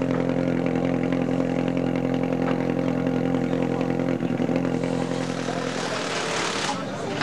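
A rally car engine idles with a low, steady drone.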